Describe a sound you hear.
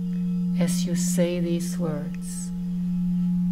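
An adult woman sings a few short notes into a microphone.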